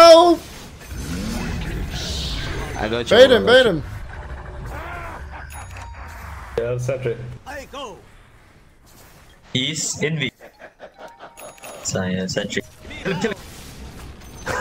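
Magic blasts and zaps crackle in a fast fight.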